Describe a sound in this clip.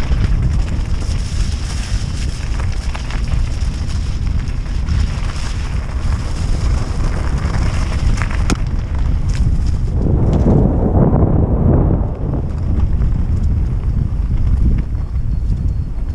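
Wind buffets loudly throughout.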